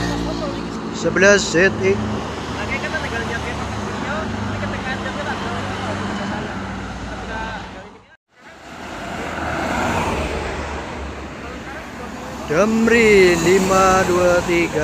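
A bus horn blares a melodic tune as the bus passes.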